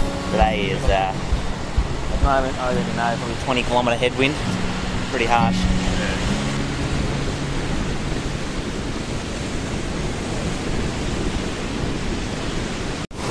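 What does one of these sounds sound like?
Ocean waves wash onto the shore.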